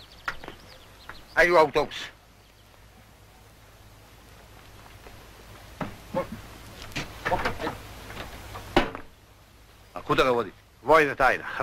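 A middle-aged man speaks loudly.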